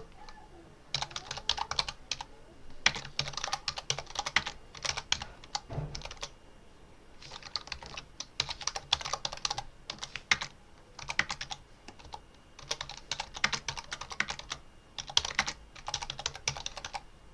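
Keys on a keyboard clatter in quick bursts of typing.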